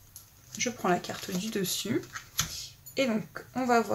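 A card is laid down softly on a table.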